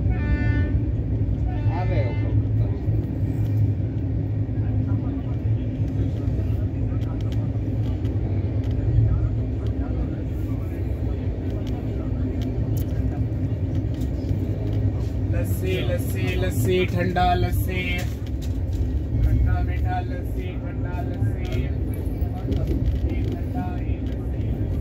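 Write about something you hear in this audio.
A train rumbles along steadily at speed.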